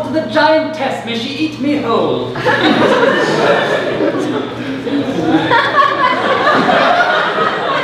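Young men talk loudly on a stage in an echoing hall.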